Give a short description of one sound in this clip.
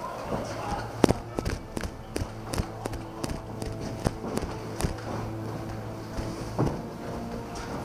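Boots thud and scuff on a hard floor.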